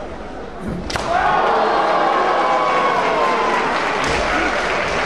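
A boy lets out a long, high battle cry in an echoing hall.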